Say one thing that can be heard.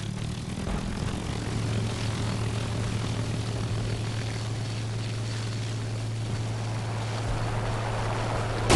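Wind rushes past a plane in flight.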